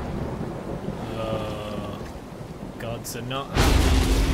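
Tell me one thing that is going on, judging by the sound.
A young man talks quietly into a headset microphone.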